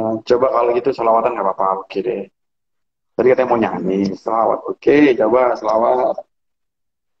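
A man talks cheerfully over an online call.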